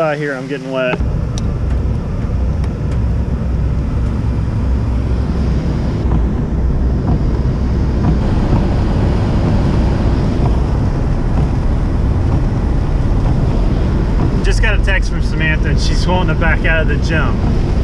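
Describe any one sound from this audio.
A car engine rumbles.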